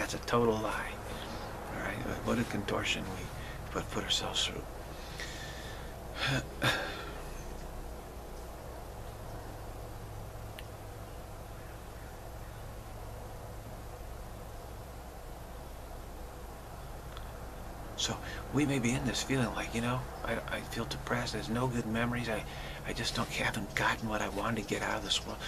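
A middle-aged man speaks calmly and close to the microphone, with a long pause.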